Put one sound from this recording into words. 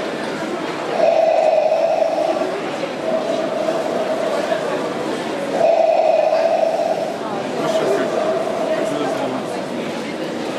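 Music plays from a small loudspeaker.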